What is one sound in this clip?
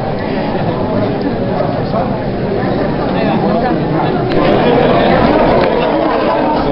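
A crowd of adults chatters and laughs in a busy room.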